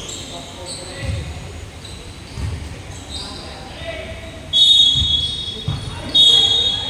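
A ball bounces with dull thumps on the floor.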